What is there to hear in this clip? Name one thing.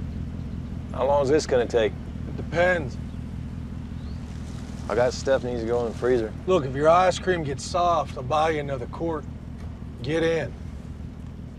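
A man answers calmly from inside a car.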